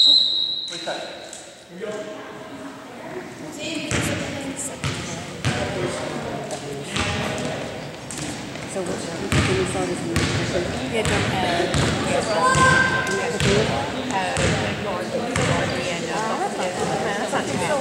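Young players and adult spectators call out and talk in the echoing hall.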